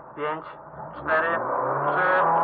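A car engine revs up sharply.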